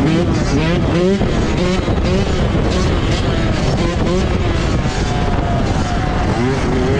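A dirt bike engine revs up and down loudly.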